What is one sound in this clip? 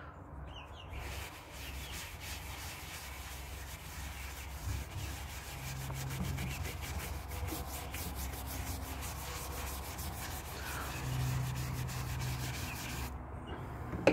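A stiff brush scrubs back and forth.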